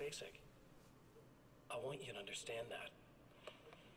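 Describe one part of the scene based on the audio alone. A man speaks calmly through a television speaker.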